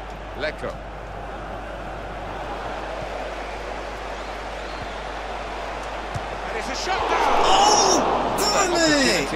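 A large stadium crowd cheers steadily and swells louder near the end.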